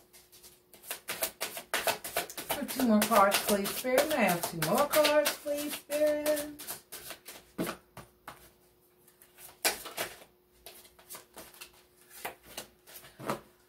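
Playing cards riffle and snap as they are shuffled.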